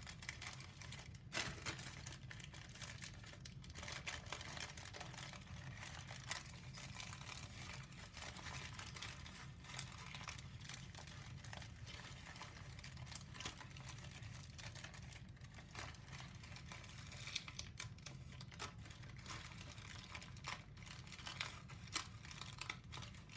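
Paper crinkles and rustles as hands fold and press it.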